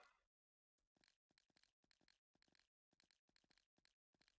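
Footsteps patter quickly on dirt.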